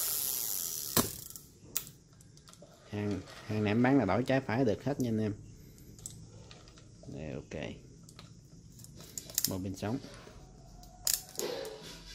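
Parts of a fishing reel click and snap.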